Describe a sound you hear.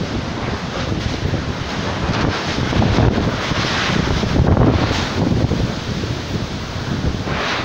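Palm fronds thrash and rustle in the wind.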